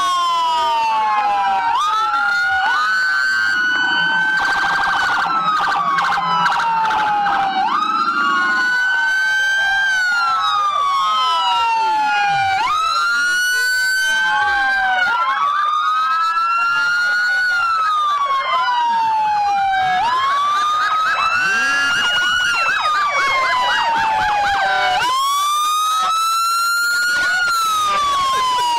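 Several police sirens wail loudly and overlap, rising and falling.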